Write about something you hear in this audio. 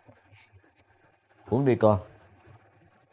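A young man speaks briefly and softly nearby.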